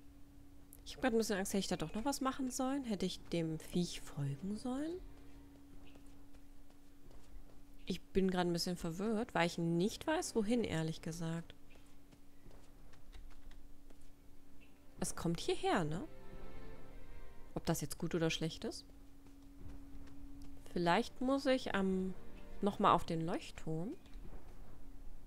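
A young woman talks calmly and close to a microphone, in bursts with pauses.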